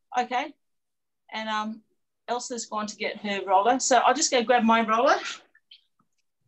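A middle-aged woman speaks with animation over an online call.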